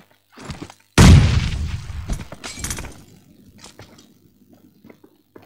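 Gunshots ring out in quick bursts.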